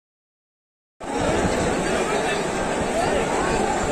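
A large crowd murmurs and chants outdoors.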